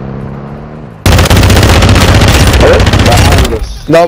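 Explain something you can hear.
A gun fires rapidly in a loud burst.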